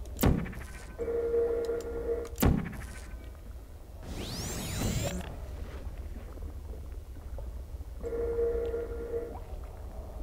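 A portal hums steadily.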